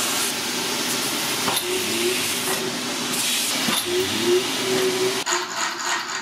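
A heavy machine hums and whirs loudly.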